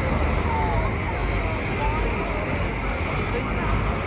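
A car engine hums as a car drives past.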